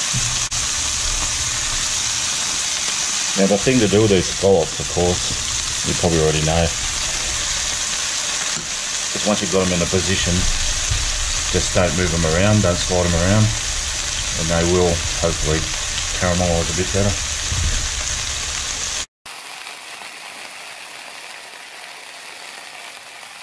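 Food sizzles and spits in a hot frying pan.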